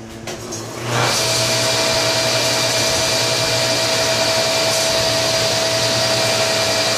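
A table saw motor starts up and runs with a loud, steady whine.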